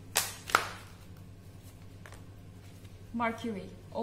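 A playing card is slapped down onto other cards.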